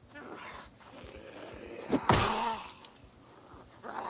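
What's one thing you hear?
A blunt weapon thuds against a body.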